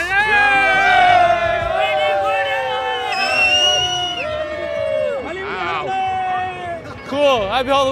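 A young man sings loudly with long held notes, close to a microphone.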